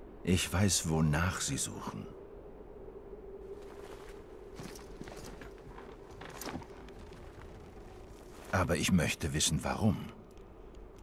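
A man speaks quietly and gravely, close by.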